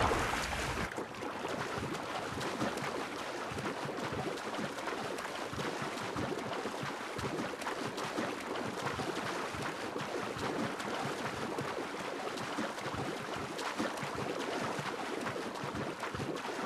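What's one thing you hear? A swimmer splashes through water with steady strokes.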